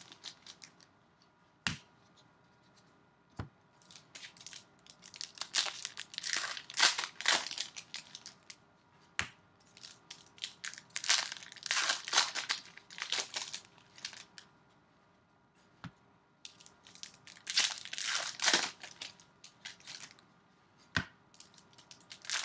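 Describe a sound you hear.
Plastic wrappers crinkle and rustle close by.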